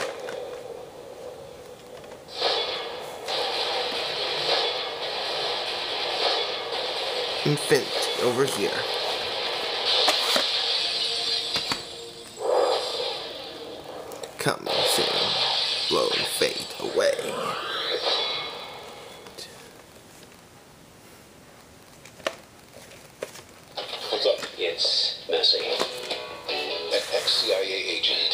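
Dramatic music plays through a small tinny speaker.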